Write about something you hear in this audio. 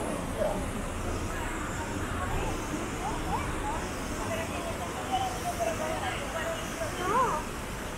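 A fountain splashes steadily nearby.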